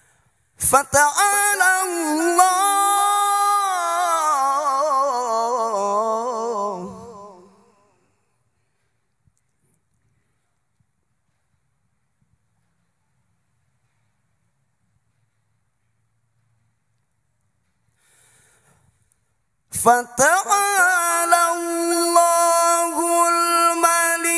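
A man chants melodiously into a microphone, heard through a loudspeaker with some reverberation.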